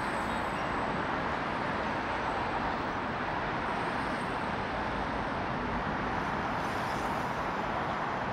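Electric scooters whir past close by.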